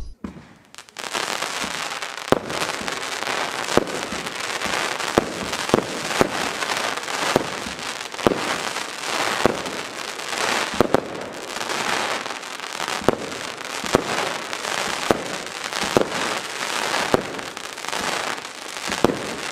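Fireworks bang and crackle in rapid bursts.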